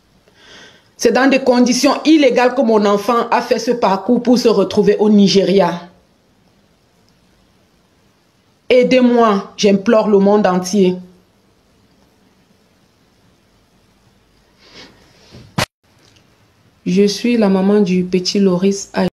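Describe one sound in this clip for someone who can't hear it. A middle-aged woman speaks with emotion in pauses, close to a microphone.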